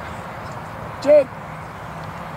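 A referee blows a short whistle blast.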